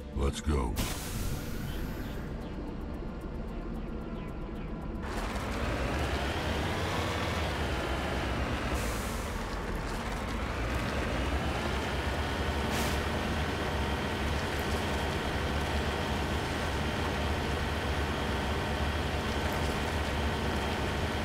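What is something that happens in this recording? A vehicle engine hums and roars as the vehicle drives over rough ground.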